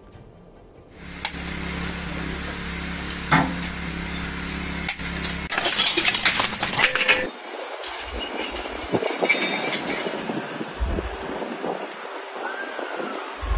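Rubble clatters and scrapes.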